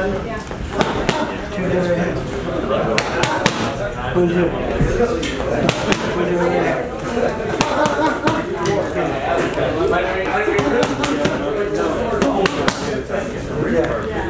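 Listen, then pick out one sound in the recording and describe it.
A middle-aged man talks with animation nearby.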